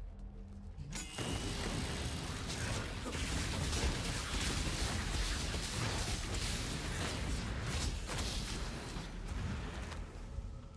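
Magic blasts crackle and boom in a rapid fight.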